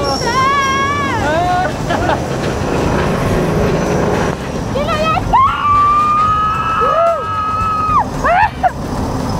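A roller coaster car clatters and rumbles up a track.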